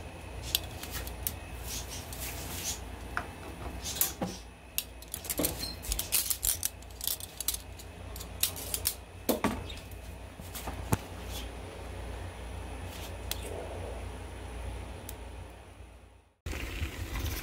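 Food sizzles and crackles on a hot grill.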